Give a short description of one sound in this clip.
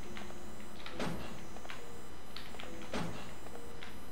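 A metal locker door swings open.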